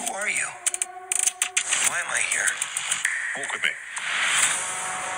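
A young man speaks with animation, close to the microphone.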